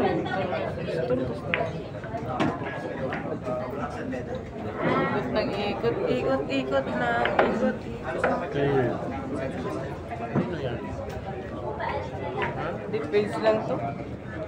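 Billiard balls knock together and roll.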